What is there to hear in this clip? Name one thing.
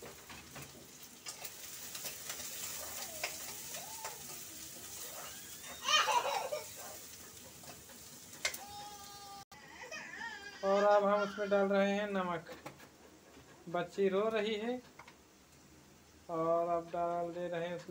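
A spoon scrapes and stirs food in a metal pan.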